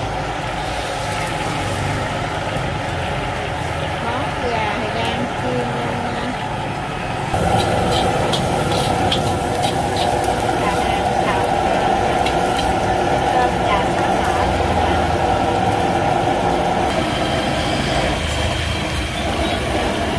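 Oil sizzles and bubbles in a hot wok.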